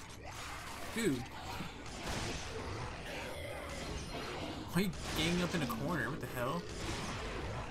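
A creature growls and shrieks.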